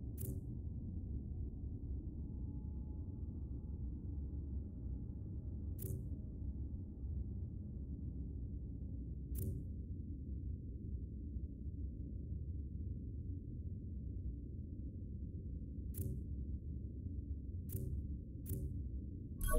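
Short soft clicks sound as menus open and close.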